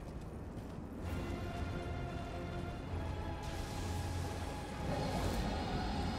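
Dramatic orchestral music swells up.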